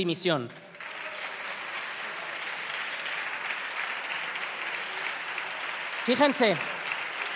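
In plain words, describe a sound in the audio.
A large crowd applauds loudly in a large echoing hall.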